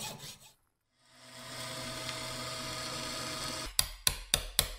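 A drill whirs steadily as it bores into metal.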